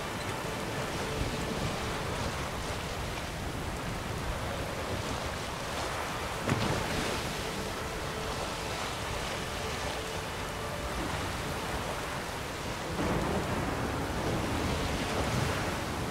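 Waves splash against a small boat's hull.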